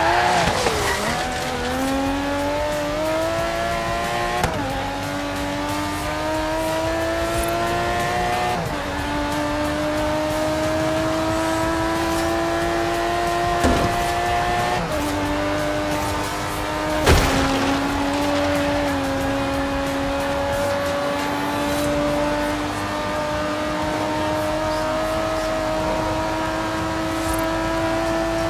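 A racing car engine roars and climbs in pitch through the gears.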